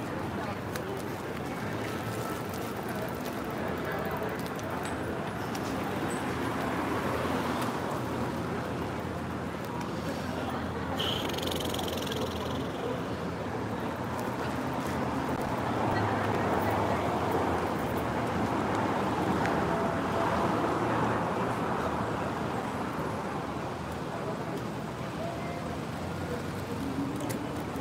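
Footsteps tap on the pavement.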